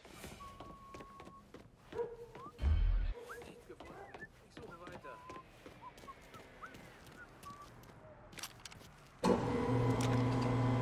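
Footsteps tap on a hard floor at a walking pace.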